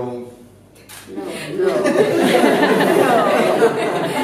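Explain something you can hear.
A crowd laughs loudly.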